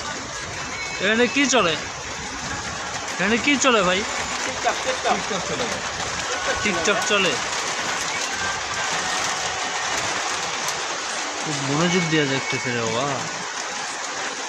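Young men talk with animation close by.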